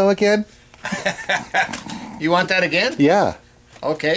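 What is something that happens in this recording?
An elderly man laughs.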